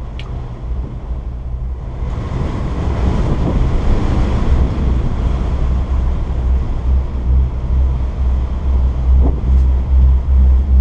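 Strong wind roars and buffets outdoors, growing louder.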